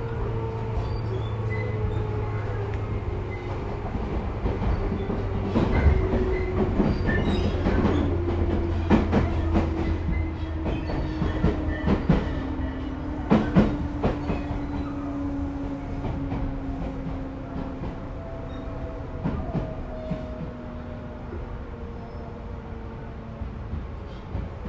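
A train rumbles slowly along the tracks.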